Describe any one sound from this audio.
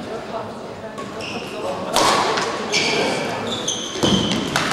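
A shuttlecock is struck sharply by rackets in a large echoing hall.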